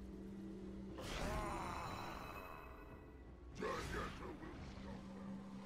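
Magic effects whoosh and shimmer in a game.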